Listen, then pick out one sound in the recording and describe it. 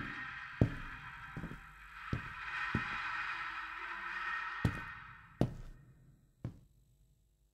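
Slow footsteps thud on a hard floor.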